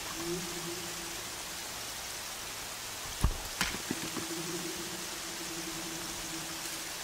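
Wind blows steadily through tall grass.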